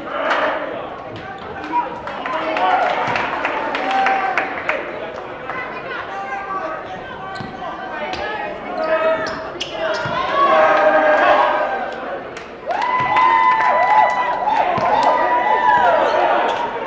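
A crowd of spectators murmurs and calls out.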